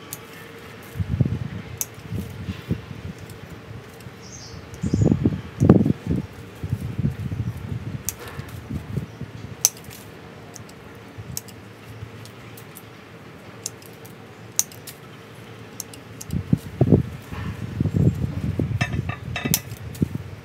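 Leaves rustle as gloved hands handle a small tree.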